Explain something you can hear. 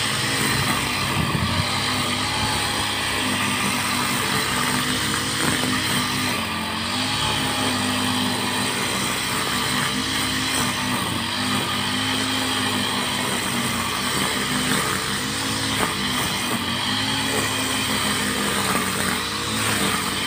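Cut grass whips and swishes against the trimmer line.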